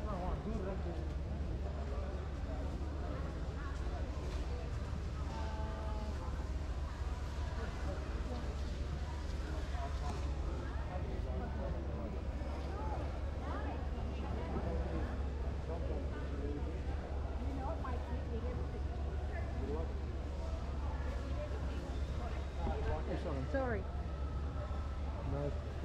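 A crowd murmurs with many voices in a large echoing hall.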